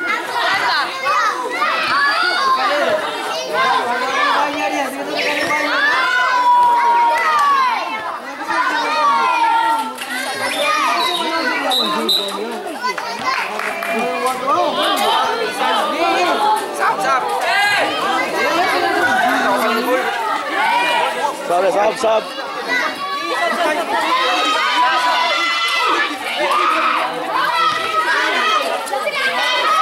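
Young boys chatter and shout close by, outdoors.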